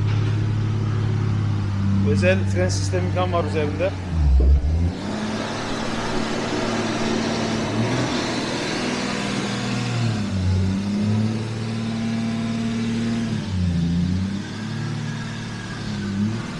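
A car engine idles with a deep, rumbling burble.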